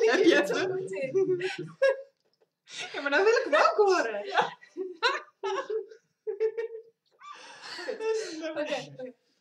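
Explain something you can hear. A group of young women and men laugh together close by.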